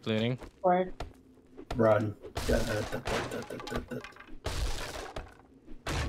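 A weapon chops against a wooden door with heavy thuds.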